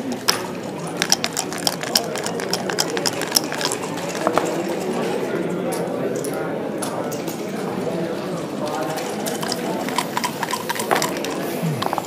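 Dice rattle and clatter across a board.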